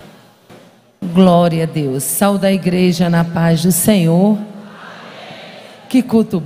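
A woman speaks loudly and with fervour into a microphone, heard through loudspeakers.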